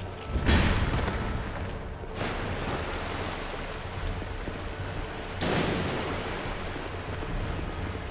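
Heavy footsteps crunch on rough stone.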